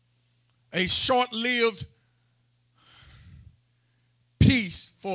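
A man preaches with emphasis through a microphone.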